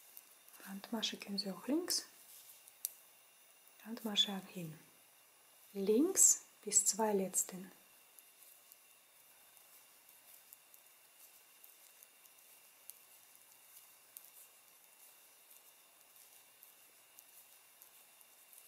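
Knitting needles click softly against each other.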